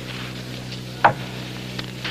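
A chess clock button clicks sharply.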